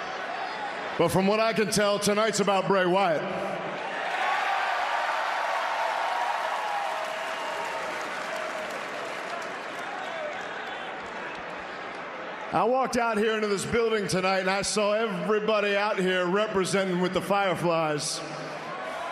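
A man speaks loudly and forcefully into a microphone over an arena's loudspeakers.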